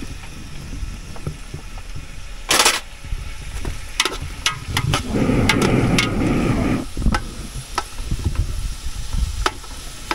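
A metal ladle scrapes and clinks in a pot.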